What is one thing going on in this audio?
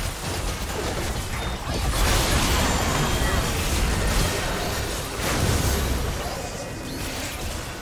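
Spell effects and weapon hits crash and whoosh in a busy video game battle.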